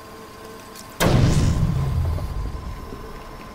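A heavy blow lands with a deep, booming thud.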